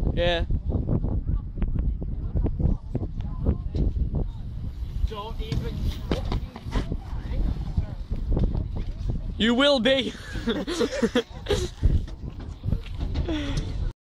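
Bicycle tyres roll over concrete.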